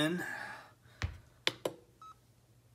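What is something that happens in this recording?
A finger presses a button with a soft click.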